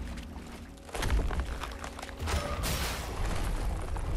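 Water splashes heavily as a large figure lands.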